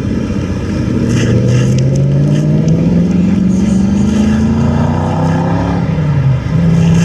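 An off-road vehicle engine revs up, rising in pitch.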